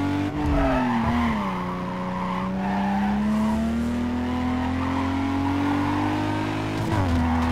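Car tyres squeal while drifting through a bend.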